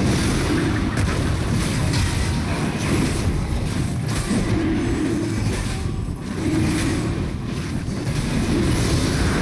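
Magic spells whoosh and crackle in rapid bursts.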